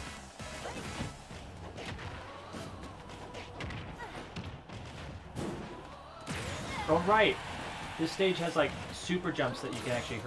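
Punches and hits land with sharp impact sounds.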